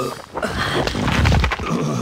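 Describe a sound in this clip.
A fist lands a heavy punch.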